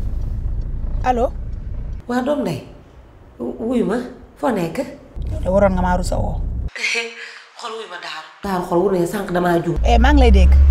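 A young woman speaks into a phone with animation, close by.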